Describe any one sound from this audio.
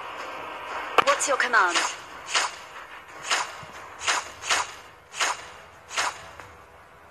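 Short, sharp video game sound effects whoosh several times.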